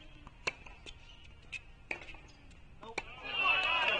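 A tennis ball is struck by a racket with sharp pops.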